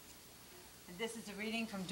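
A woman reads aloud into a microphone.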